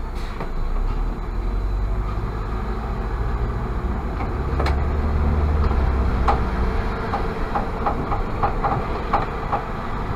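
A trolleybus pulls away ahead with a low rumble.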